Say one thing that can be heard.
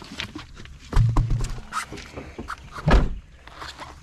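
A heavy rubber tyre thumps down onto the ground.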